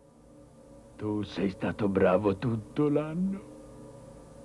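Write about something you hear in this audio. An elderly man speaks calmly and warmly, close by.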